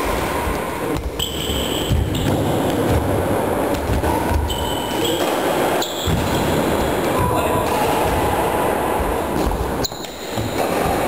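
A badminton racket strikes a shuttlecock in a large echoing hall.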